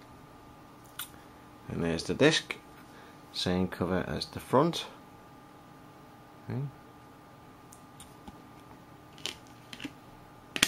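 A disc clicks as it is pulled from and pressed onto a plastic case.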